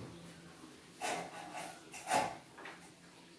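A man knocks and taps on a wooden door frame.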